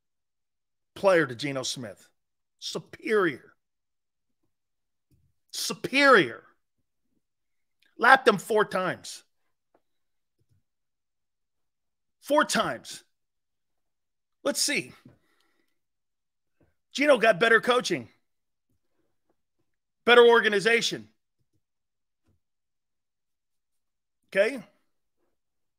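A middle-aged man speaks through a microphone in short, emphatic bursts with pauses between them.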